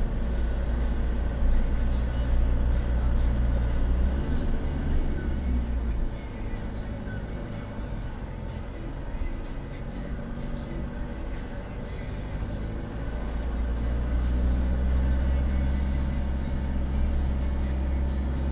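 A car engine hums low and steady, dropping quieter as the car slows and rising again as it speeds up.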